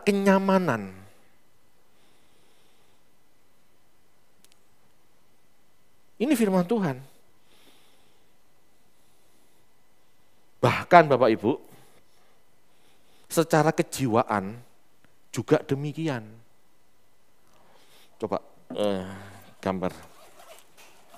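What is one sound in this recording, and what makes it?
A man speaks with animation through a microphone, in short bursts with pauses.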